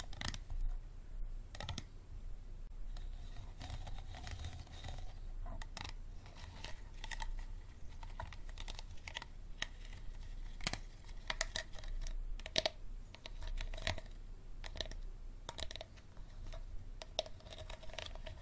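A plastic bottle crinkles and crackles as fingers squeeze it, close up.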